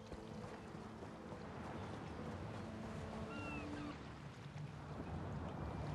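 Waves lap gently against a sandy shore.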